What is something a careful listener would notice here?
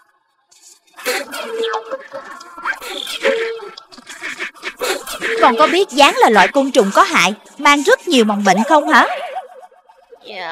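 A cartoon woman speaks with animation.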